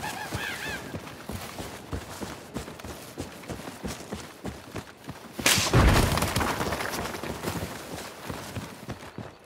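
Footsteps crunch through leafy undergrowth.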